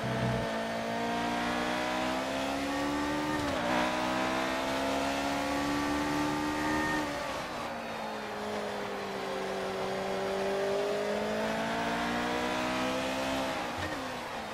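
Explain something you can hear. A racing car engine roars loudly, its pitch rising as it speeds up and dropping sharply at each gear change.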